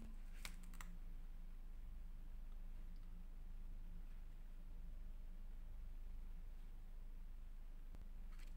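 Paper rustles softly as hands handle a sheet.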